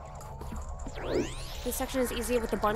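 A game character's spin attack whooshes with a rising sparkle.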